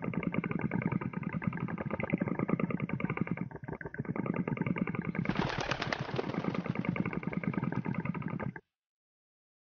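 A toy car's engine hums and rattles as it drives along.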